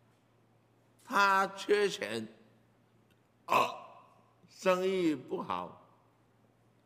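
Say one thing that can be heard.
An elderly man speaks into a microphone in short phrases, pausing between them.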